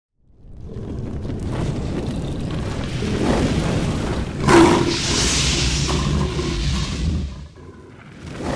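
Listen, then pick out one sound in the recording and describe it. Flames roar and whoosh.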